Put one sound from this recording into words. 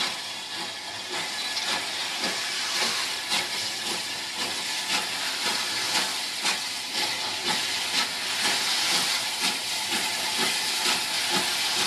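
Steam hisses from a locomotive.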